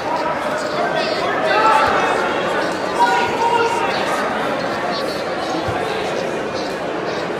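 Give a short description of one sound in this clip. Spectators shout encouragement from nearby.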